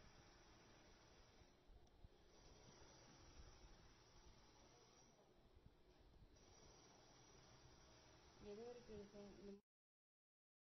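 A needle pulls thread softly through cloth.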